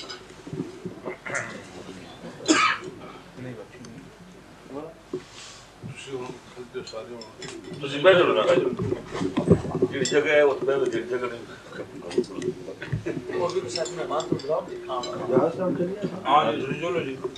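Plates and cutlery clink softly.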